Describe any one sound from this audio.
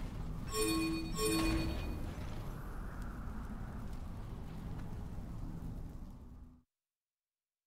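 Battle sound effects clash and rumble, then cut off suddenly.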